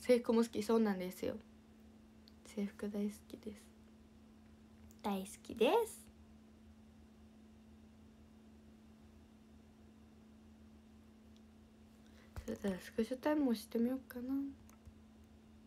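A young woman speaks playfully and close up, in short bursts with pauses.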